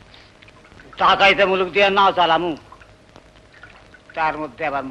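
An elderly man talks loudly and with animation, close by.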